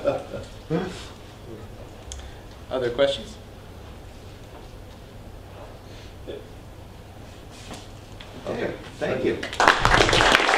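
A man speaks in a room, with pauses.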